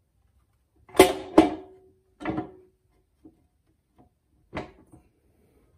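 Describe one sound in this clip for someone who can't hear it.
A heavy metal housing clunks and knocks as hands shift it.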